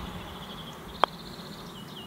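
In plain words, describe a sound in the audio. A golf putter taps a ball.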